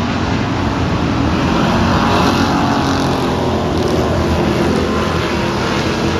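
Car engines rev and rise in pitch as the cars speed through a turn.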